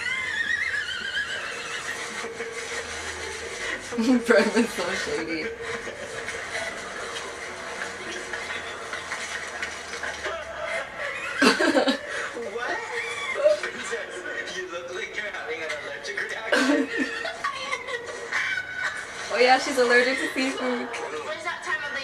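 A young woman laughs close to a microphone.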